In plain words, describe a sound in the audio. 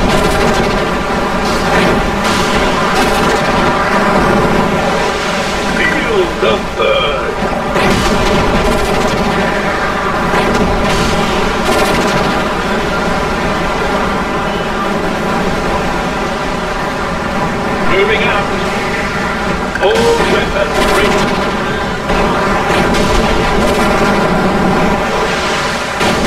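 Laser weapons zap and crackle in a game battle.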